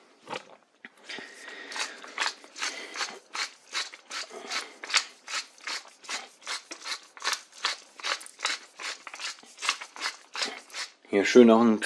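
A pepper mill grinds with quick, rhythmic clicks.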